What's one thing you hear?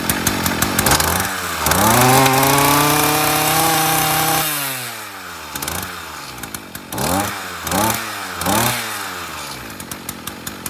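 A small two-stroke engine revs up sharply several times and drops back to idle.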